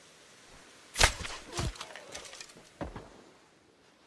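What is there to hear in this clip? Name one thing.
Rifle shots ring out and echo.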